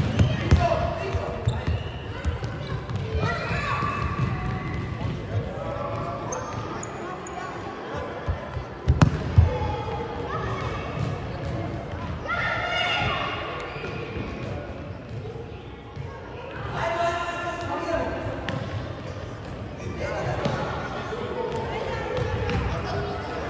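Children shout and call out across a large echoing hall.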